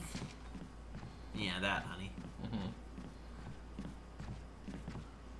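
Footsteps thud quickly on a wooden floor.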